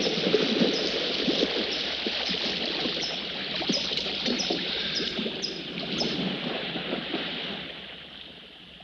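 Water splashes as a swimmer does strokes.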